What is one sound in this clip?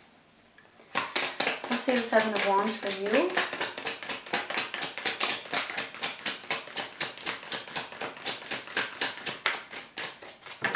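A deck of cards is shuffled with quick, rapid clicking and flicking.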